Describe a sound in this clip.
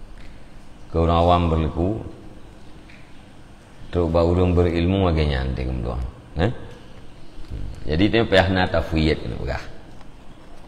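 A middle-aged man speaks calmly into a close microphone, in short phrases.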